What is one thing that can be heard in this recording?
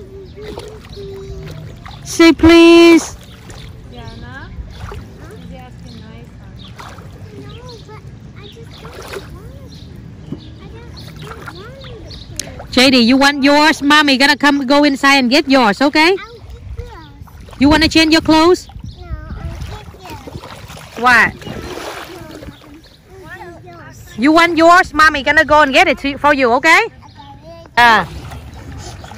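Water splashes as small feet wade through a shallow lake.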